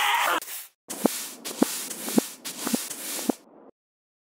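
A broom scrapes across a wooden floor.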